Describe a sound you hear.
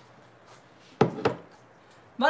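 A bowl is set down on a counter with a thud.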